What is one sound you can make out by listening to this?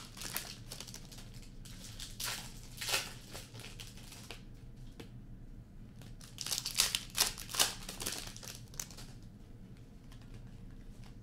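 Trading cards rustle and flick as they are shuffled through by hand.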